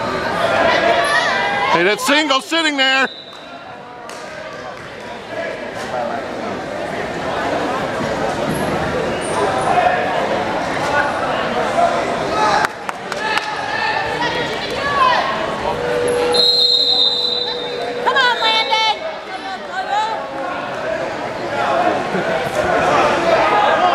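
Wrestlers' shoes squeak on the mat.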